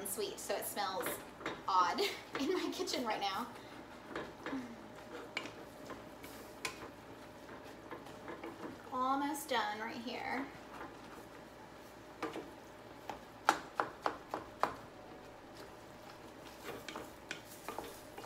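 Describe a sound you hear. A wooden spoon knocks against a metal pot while stirring.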